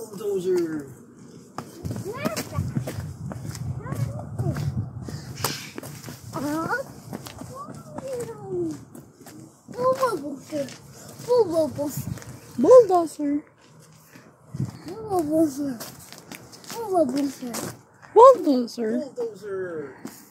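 Small footsteps patter on pavement.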